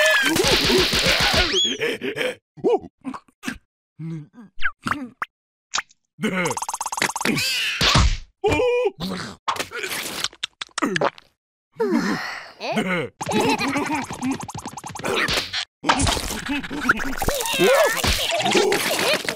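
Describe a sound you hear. A cartoon creature squeals and babbles in a high, silly voice.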